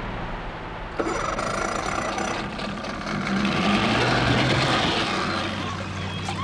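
An outboard motor runs with a loud rumble.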